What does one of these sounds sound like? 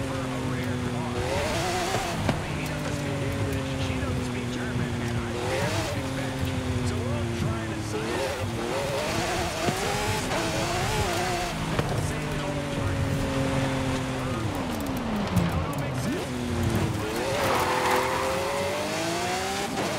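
A sports car engine roars, rising and falling in pitch as it shifts gears.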